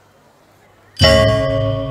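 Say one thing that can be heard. A gamelan ensemble starts playing loudly with ringing metal gongs and chimes in a large hall.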